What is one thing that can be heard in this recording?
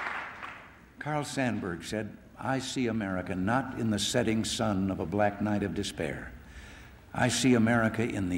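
An older man speaks calmly and firmly through a microphone, echoing in a large hall.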